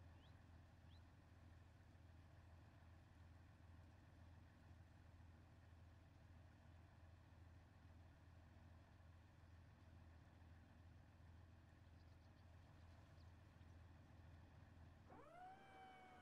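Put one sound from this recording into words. A heavy tracked vehicle's engine rumbles steadily and low.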